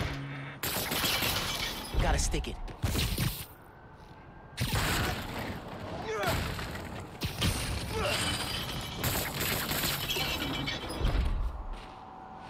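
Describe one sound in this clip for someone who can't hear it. A heavy metal crate crashes down with a loud thud.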